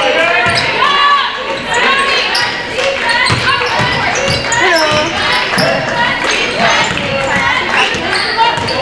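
A basketball bounces with dull thuds on the floor.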